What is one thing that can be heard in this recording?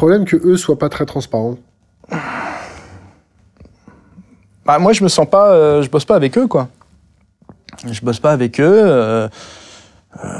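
A man speaks calmly and thoughtfully, close to a microphone.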